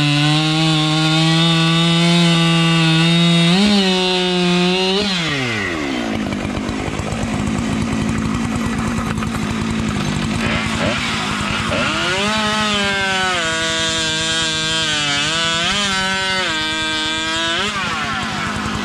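A chainsaw roars loudly as it cuts through a log, its engine pitch rising and falling.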